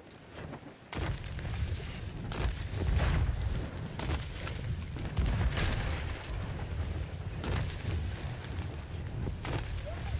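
An explosion bursts and roars.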